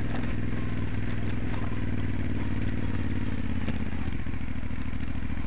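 A V-twin adventure motorcycle cruises along a gravel track.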